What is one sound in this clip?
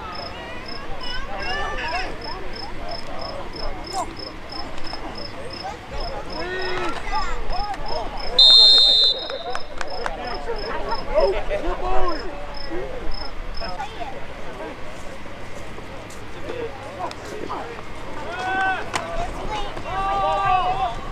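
Players and spectators shout and call out across an open field.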